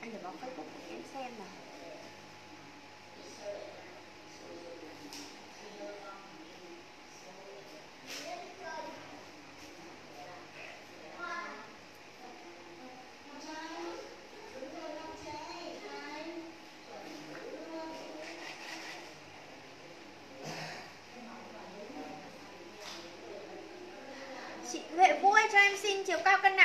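A young woman talks calmly and close by, pausing often.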